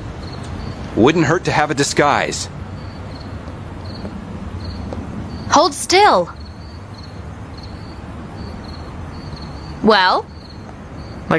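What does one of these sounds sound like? A young woman speaks calmly in short phrases.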